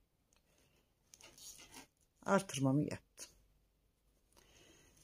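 Knitting needles click and scrape softly against each other.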